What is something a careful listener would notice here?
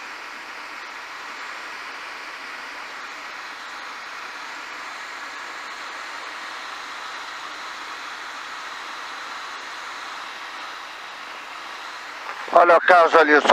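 A small aircraft engine drones steadily.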